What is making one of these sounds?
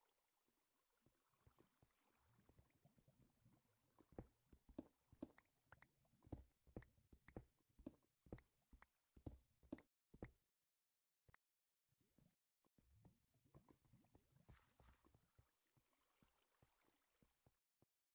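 Footsteps tap on hard stone.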